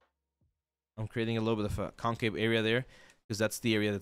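A man speaks animatedly into a close microphone.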